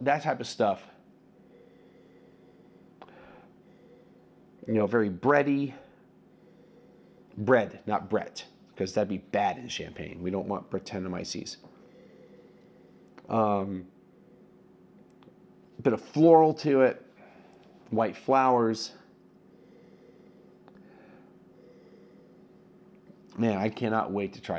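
A middle-aged man speaks calmly and expressively close to a microphone, in short bursts.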